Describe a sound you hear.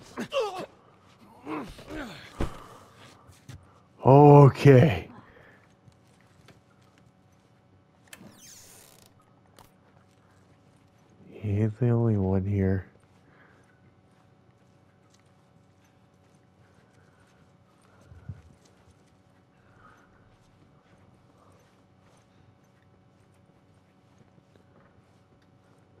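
Soft footsteps shuffle slowly across a carpeted floor.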